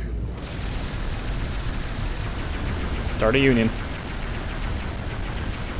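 A laser beam fires with a steady, crackling roar.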